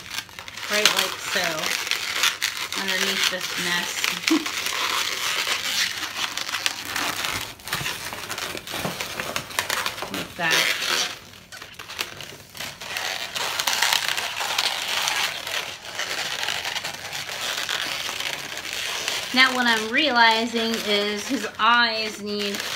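Rubber balloons squeak and rub as they are twisted.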